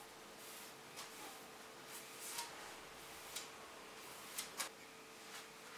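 A sponge rubs across a wooden board.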